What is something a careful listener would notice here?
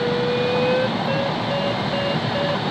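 A flight instrument beeps in quick, even pulses.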